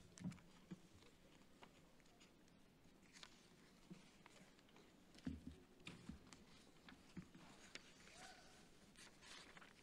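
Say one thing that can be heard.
Paper sheets rustle and shuffle.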